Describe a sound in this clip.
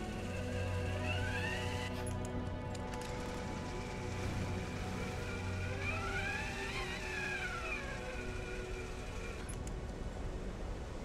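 A metal pulley whines and hums as it slides along a taut rope.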